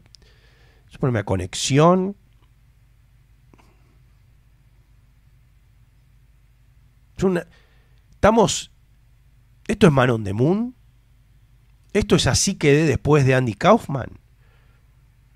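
A middle-aged man speaks close into a microphone in short, lively bursts with pauses.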